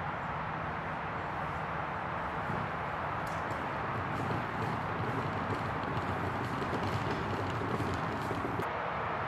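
A deer grunts and bleats softly.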